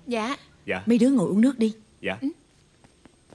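A woman speaks warmly, close by.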